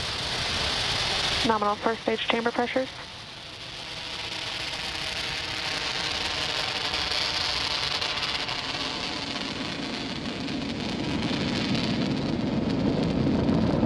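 A rocket engine roars steadily over a live broadcast.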